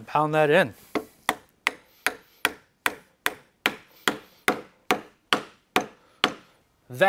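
A rubber mallet knocks repeatedly and steadily on wood.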